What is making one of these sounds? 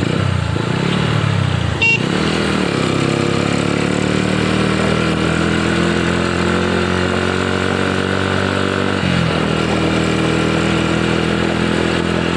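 Motorcycles ride past on the road.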